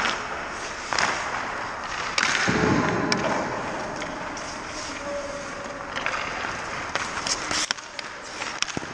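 Ice skates scrape and carve across the ice close by.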